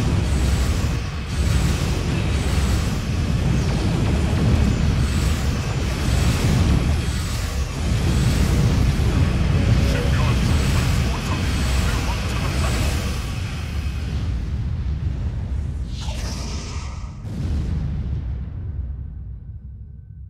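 Energy weapons zap and fire repeatedly.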